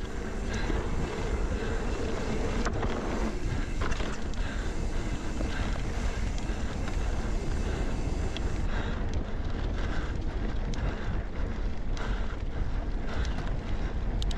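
Wind buffets a microphone while riding.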